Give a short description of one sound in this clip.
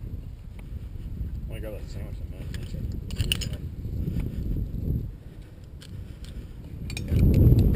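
Metal rappelling gear clinks on a rope.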